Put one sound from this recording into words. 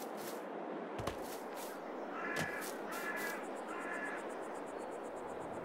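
Footsteps tread across grass.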